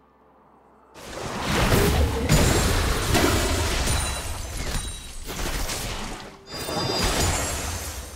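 Loud game combat effects of strikes and magic blasts clash in rapid bursts.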